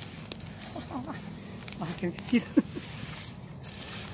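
Footsteps rustle through grass close by.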